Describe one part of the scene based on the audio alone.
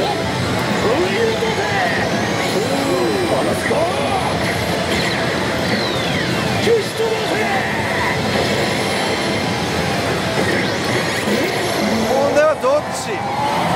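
A slot machine plays loud electronic music and sound effects.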